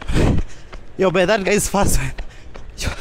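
A young man speaks close into a microphone with animation.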